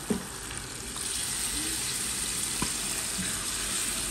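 A thick sauce pours into a pan.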